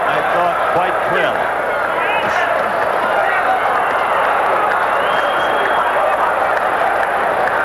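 A large crowd cheers and shouts loudly in an echoing arena.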